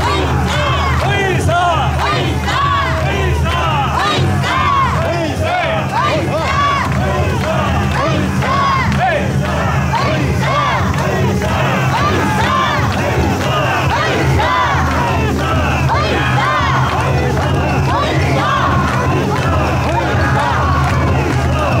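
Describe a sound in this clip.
A large outdoor crowd cheers and shouts all around.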